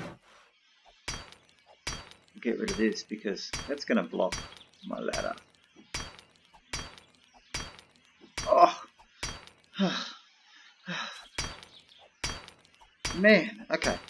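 A hammer knocks steadily on wood.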